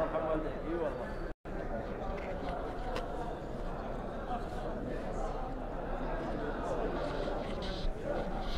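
Men chatter and greet one another in a crowded, echoing hall.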